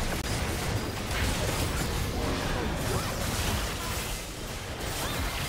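Magic spells crackle and whoosh amid clashing battle sounds.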